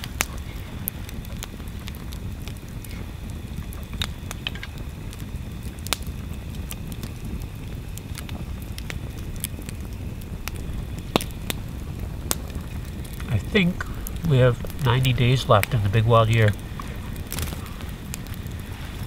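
A campfire crackles and pops close by.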